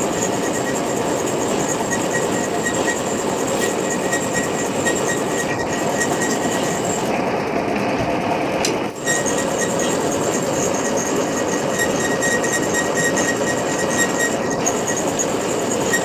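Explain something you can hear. A cutting tool scrapes against spinning metal with a high whine.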